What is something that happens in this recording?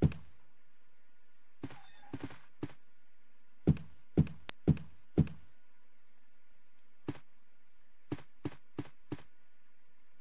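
Heavy footsteps thud on a carpeted floor.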